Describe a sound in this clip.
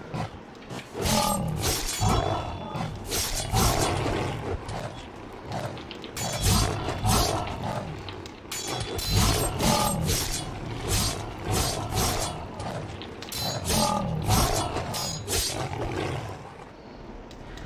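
Blows land in a fight, with repeated sharp hits.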